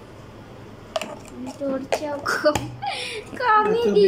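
A plastic spoon clinks against a jar.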